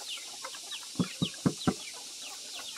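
A plastic bucket knocks against wood a few times.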